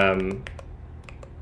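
A young man speaks briefly and calmly into a microphone.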